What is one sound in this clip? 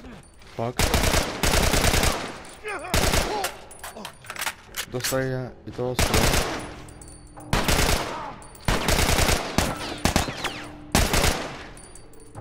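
Rifle shots fire in loud bursts that echo in a large room.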